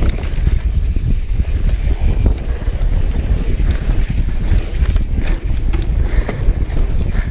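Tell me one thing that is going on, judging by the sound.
Mountain bike tyres rumble and crunch over a rough dirt trail.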